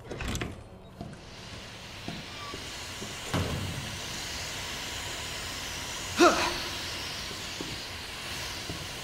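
Steam hisses loudly and steadily.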